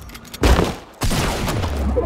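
A pickaxe strikes wood.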